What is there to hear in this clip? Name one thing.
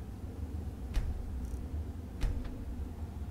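Short menu clicks tick now and then.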